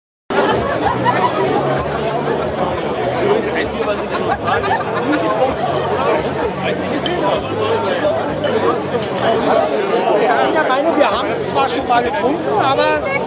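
A crowd of men and women chatter loudly all around outdoors.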